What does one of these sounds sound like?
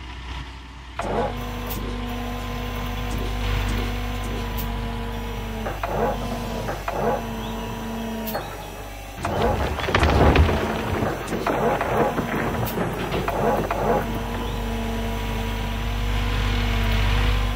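An excavator engine hums steadily.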